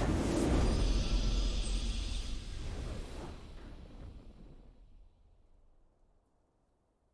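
A triumphant video game fanfare swells and then fades away.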